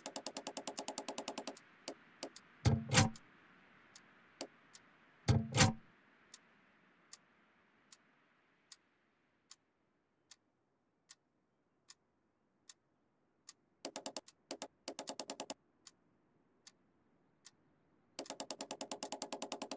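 A combination dial clicks rapidly as it turns.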